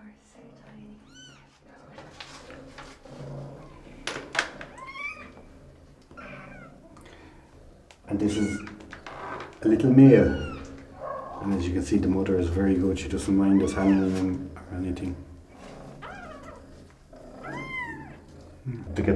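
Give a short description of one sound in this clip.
Kittens mew in high, thin cries.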